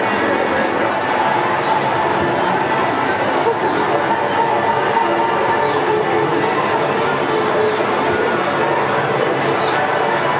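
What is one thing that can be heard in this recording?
Cheerful barrel organ music plays loudly and steadily.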